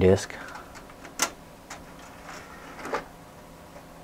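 A disc drive tray slides shut with a click.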